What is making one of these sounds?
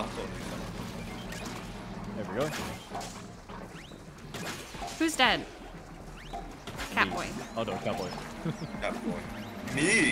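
Game weapons splat and spray in rapid bursts.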